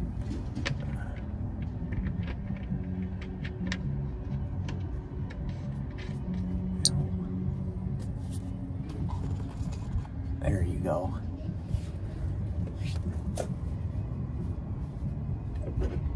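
Hands tap and scrape against metal up close.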